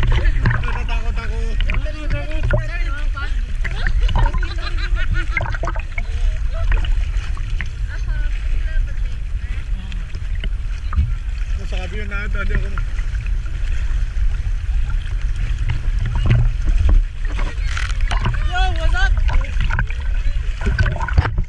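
Water splashes and sloshes close by.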